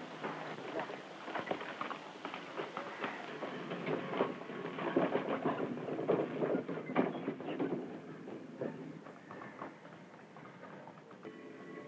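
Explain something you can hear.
A horse carriage creaks as people climb aboard.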